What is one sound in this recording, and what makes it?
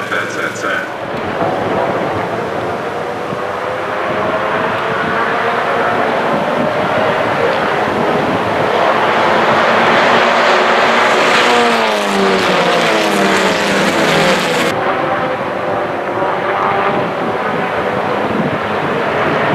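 Racing car engines roar loudly as a pack of cars speeds around a track outdoors.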